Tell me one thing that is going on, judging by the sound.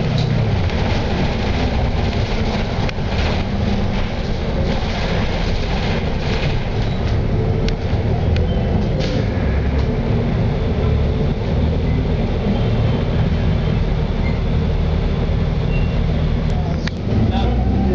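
Loose parts of a bus rattle and clatter as it rolls.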